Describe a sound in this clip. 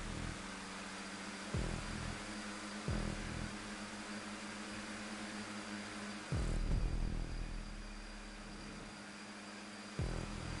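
A race car engine drones steadily at high speed, shifting gears now and then.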